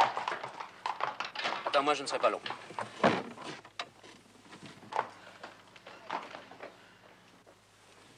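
Horse hooves clop on cobblestones.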